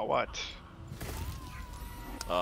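A magic blast bursts with a bright whoosh.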